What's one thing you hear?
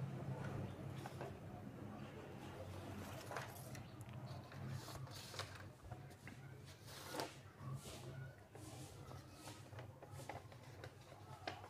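Paper rustles and crinkles as a sheet is moved.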